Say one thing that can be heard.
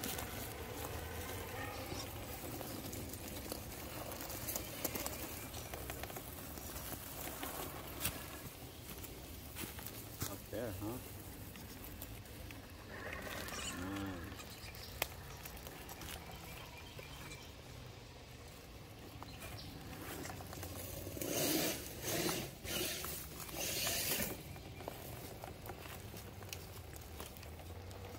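Plastic tyres scrape and knock on rock.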